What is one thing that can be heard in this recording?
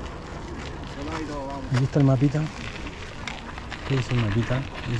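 A man speaks casually close by, outdoors.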